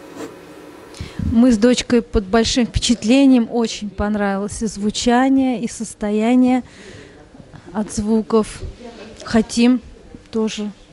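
A middle-aged woman talks with animation into a microphone.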